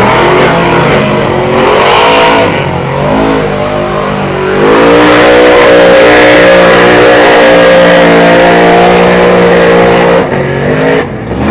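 Mud splashes and churns under big tyres.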